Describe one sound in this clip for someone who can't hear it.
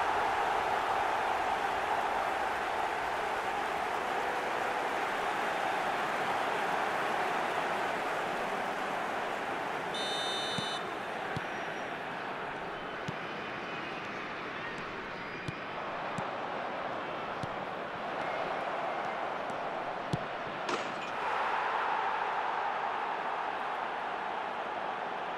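A large stadium crowd cheers and roars loudly.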